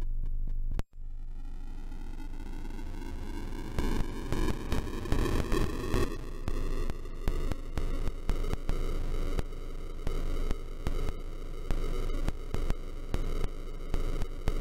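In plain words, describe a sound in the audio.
Chiptune video game music plays with a bouncy, rising melody and a steady beat.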